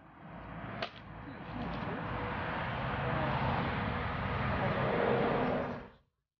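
Axes split firewood with sharp knocks.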